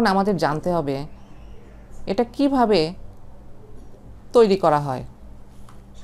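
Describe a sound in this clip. A middle-aged woman speaks calmly into a close microphone.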